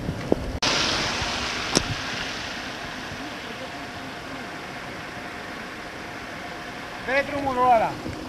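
A car engine runs outdoors.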